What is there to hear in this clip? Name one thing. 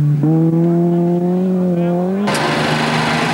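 A racing car engine roars past at high revs.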